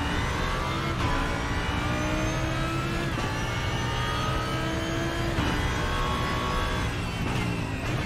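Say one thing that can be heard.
A racing car engine roars loudly, rising in pitch and dropping sharply with each gear change.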